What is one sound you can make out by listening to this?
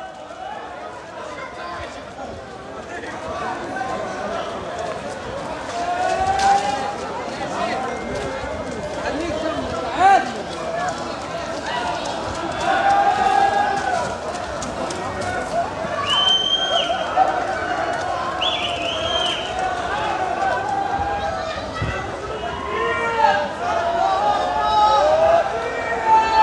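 A crowd of people shouts, cheers and laughs outdoors.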